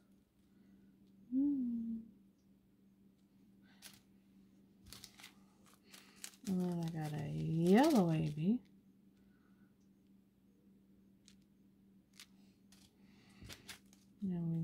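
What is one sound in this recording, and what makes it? Plastic bags of beads crinkle and rustle.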